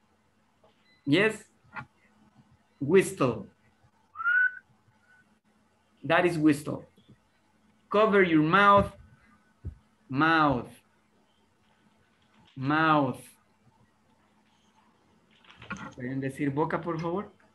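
A man speaks in short phrases through an online call.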